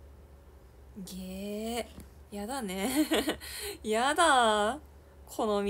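A young woman speaks close by with animation, in a high voice.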